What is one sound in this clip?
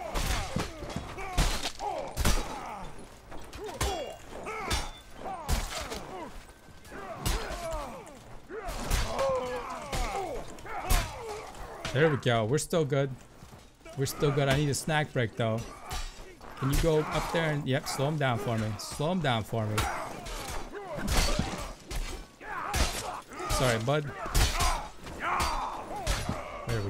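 Swords clash and strike again and again.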